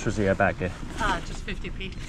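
Fabric rustles as hands handle a garment.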